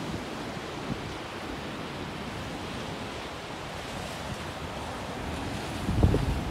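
Ocean waves break and wash steadily onto the shore outdoors.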